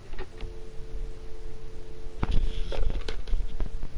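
Telephone keys are pressed with soft clicks.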